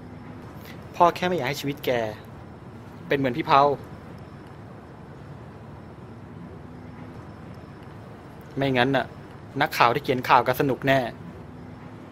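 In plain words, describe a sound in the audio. A man speaks quietly and seriously nearby.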